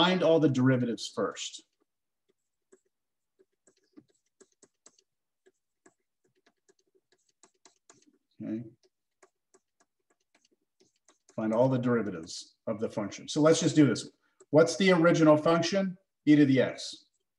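A man speaks calmly into a close microphone, explaining in pauses.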